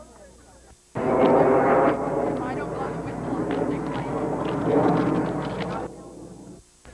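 A group of young girls cheers loudly together outdoors.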